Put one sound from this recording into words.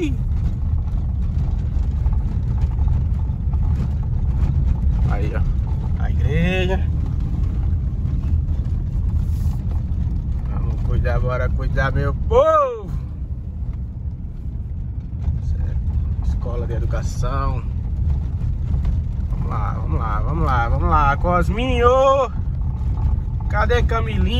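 A car engine hums and tyres rumble steadily over cobblestones.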